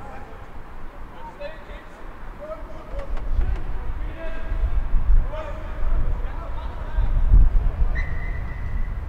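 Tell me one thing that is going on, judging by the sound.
Men shout and grunt close by.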